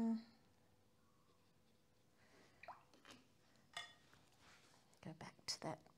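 A paintbrush swishes and taps in a jar of water.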